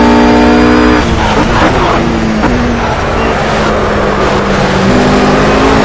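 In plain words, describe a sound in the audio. A GT3 race car engine drops down through the gears under braking.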